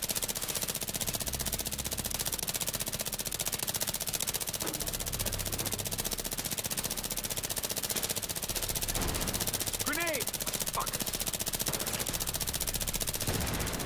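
Rapid gunfire crackles without pause.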